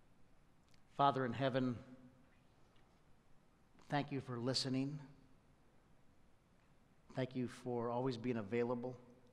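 A middle-aged man speaks calmly into a microphone in a large echoing hall, with long pauses.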